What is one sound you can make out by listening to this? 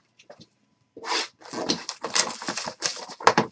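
Plastic wrap crinkles and tears as it is pulled open.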